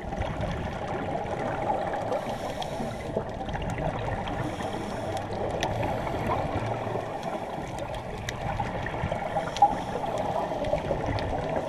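A diver's breathing gear bubbles and hisses underwater.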